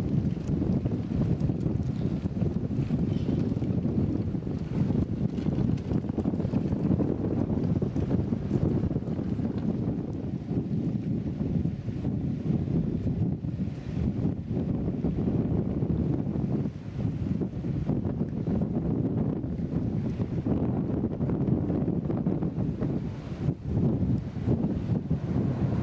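Wind rumbles steadily outdoors over open water.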